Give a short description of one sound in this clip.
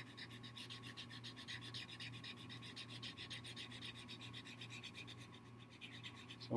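A marker scribbles quickly on paper.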